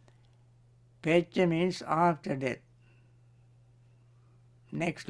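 A man recites slowly and calmly through a microphone.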